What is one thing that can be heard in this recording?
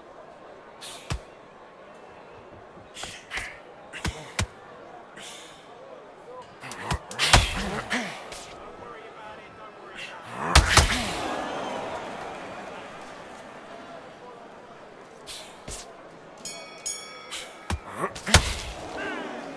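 Boxing gloves land on a body with heavy thuds.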